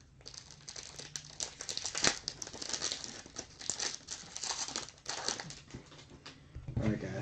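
A plastic wrapper crinkles and tears close by.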